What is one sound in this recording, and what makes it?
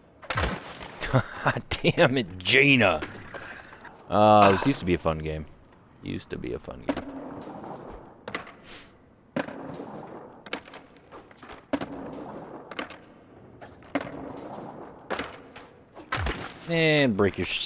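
A skateboard clacks as it lands.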